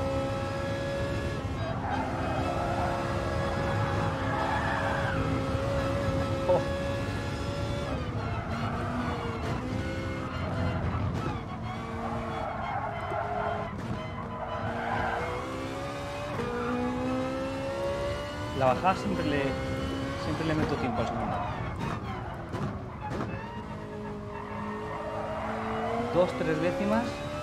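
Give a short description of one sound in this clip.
A racing car engine revs up and down through the gears.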